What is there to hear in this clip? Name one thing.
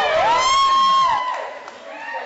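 A man laughs loudly and shrieks close by.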